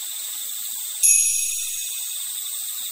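A coin is picked up with a short chime.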